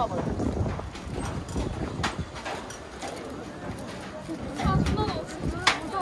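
Wind blows against a microphone outdoors.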